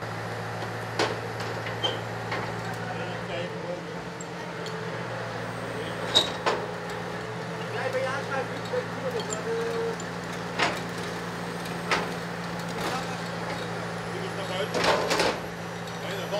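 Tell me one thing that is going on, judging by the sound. Metal parts clank now and then.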